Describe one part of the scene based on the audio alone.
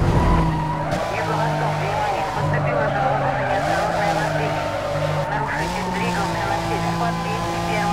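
Car tyres screech through a long turn.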